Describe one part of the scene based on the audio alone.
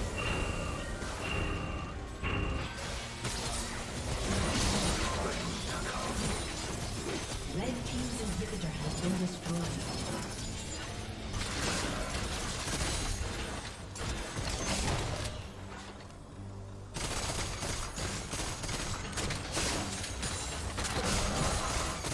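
Game spell effects crash and crackle in a busy fight.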